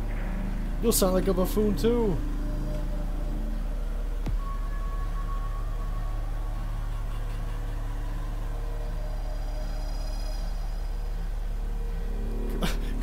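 A film projector hums and whirs steadily.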